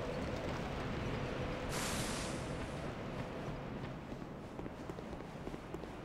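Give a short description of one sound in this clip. Armored footsteps crunch over dry leaves and stone.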